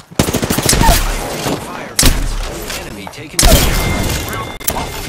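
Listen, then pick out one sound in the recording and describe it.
A rifle fires a few loud shots.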